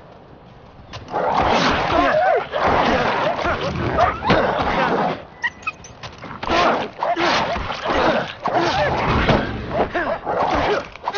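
Wild dogs snarl and growl up close.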